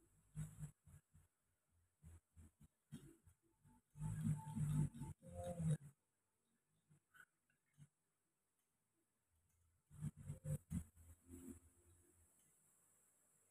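Hands rub and press on bare skin with soft brushing sounds.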